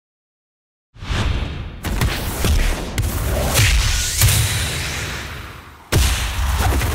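A ball is kicked hard with a loud whooshing rush.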